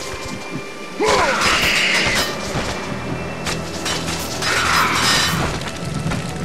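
Winged creatures screech shrilly.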